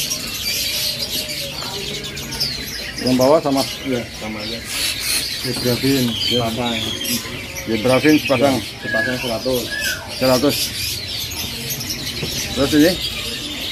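Small birds chirp and twitter busily nearby.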